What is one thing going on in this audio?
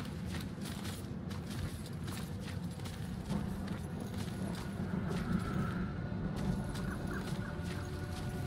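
Footsteps crunch steadily on a rough path.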